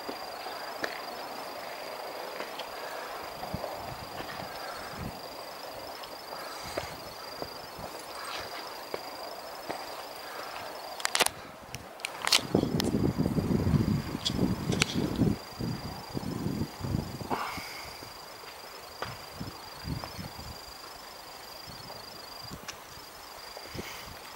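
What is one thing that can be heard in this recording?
Footsteps crunch on a dirt and stone trail.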